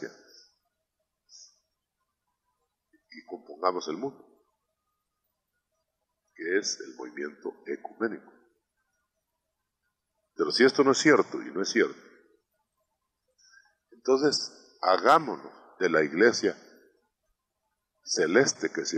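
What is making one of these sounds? A man speaks through a microphone in short, emphatic bursts with pauses between them.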